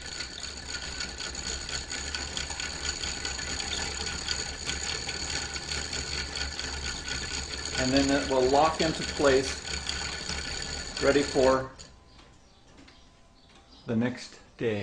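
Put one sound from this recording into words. A wooden clock ticks steadily.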